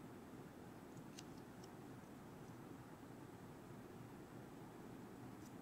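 Small clicks and taps come from handling a small object up close.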